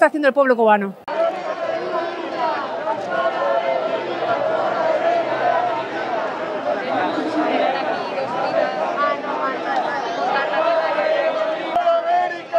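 A crowd of marchers chants outdoors.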